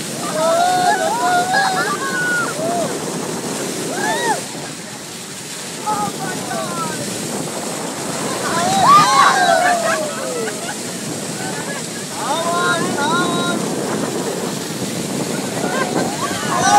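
Water rushes and splashes along a moving boat's hull.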